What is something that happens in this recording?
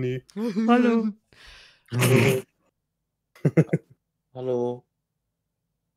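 A young woman laughs close into a microphone.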